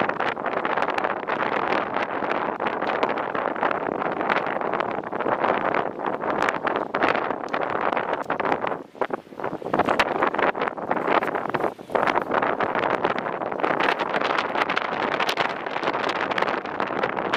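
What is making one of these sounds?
Strong wind gusts and rumbles outdoors.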